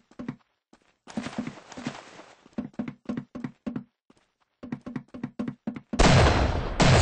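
Footsteps crunch in a quick, steady rhythm.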